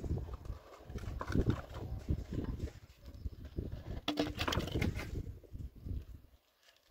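Wooden planks scrape and knock together as they are pulled from rubble.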